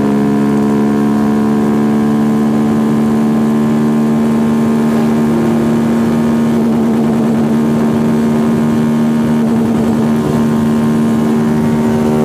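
A motorcycle engine roars loudly and steadily at high speed, close by.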